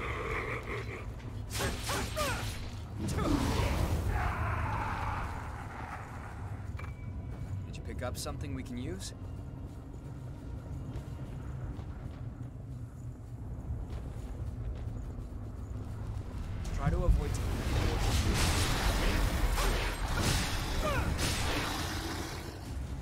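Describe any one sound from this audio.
Heavy blows and slashes strike with bursts of noise during a fight.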